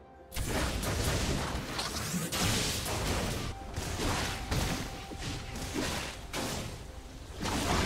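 Blades slash and clang in a quick fight.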